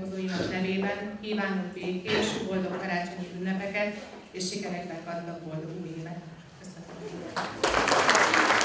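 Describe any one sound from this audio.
A woman speaks calmly into a microphone in a room.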